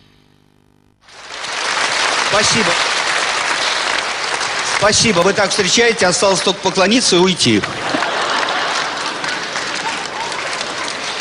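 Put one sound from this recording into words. A large audience claps and cheers.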